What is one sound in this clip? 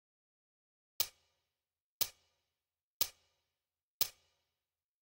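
A countdown timer beeps once a second.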